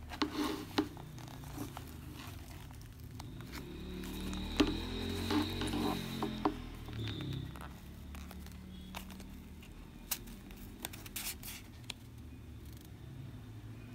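Fingers rustle and tap against a leather wallet.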